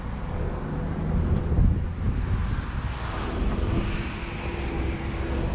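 Footsteps scuff along a paved path outdoors.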